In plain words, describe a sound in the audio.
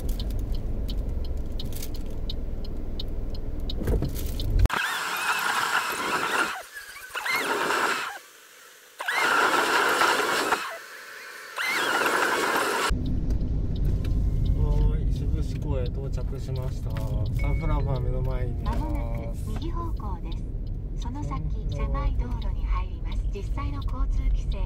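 A car engine hums and tyres rumble on the road from inside the car.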